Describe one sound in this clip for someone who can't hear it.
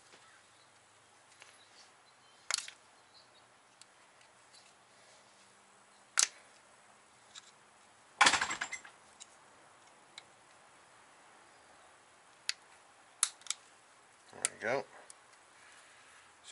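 Metal tools clink and knock against an engine.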